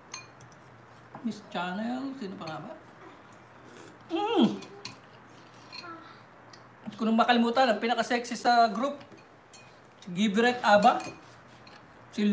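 A fork clinks against a glass bowl.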